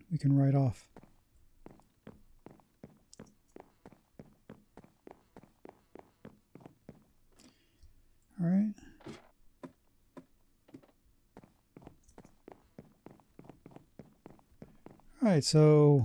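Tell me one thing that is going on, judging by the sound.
Footsteps tap quickly and steadily on wooden planks.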